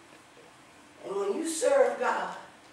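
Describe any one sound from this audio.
A woman speaks loudly through a microphone in an echoing room.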